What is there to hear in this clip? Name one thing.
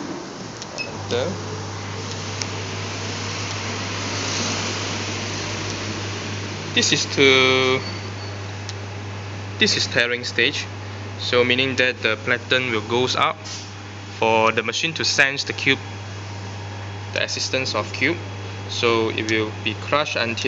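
A machine motor hums steadily and low.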